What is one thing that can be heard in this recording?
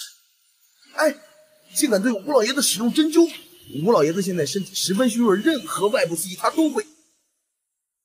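A middle-aged man speaks close by with animation.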